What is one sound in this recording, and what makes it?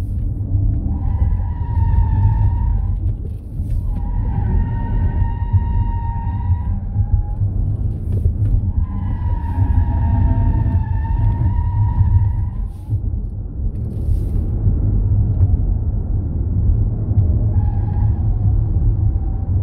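Tyres squeal in long bursts through corners.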